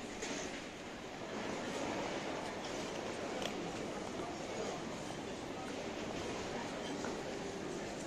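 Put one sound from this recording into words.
Suitcase wheels roll across a hard floor.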